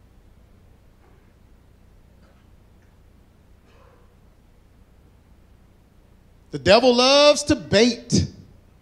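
A man speaks loudly and with animation through a microphone.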